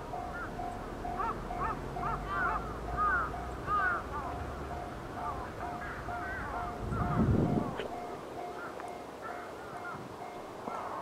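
A diesel locomotive rumbles faintly in the distance as it slowly approaches.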